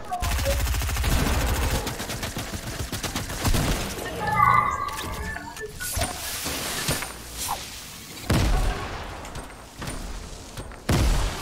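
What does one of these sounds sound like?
Building pieces snap into place with hard knocks.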